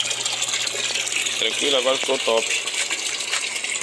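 Water trickles from a pipe into a barrel.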